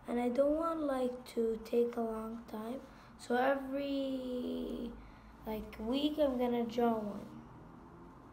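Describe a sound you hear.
A young boy talks close by.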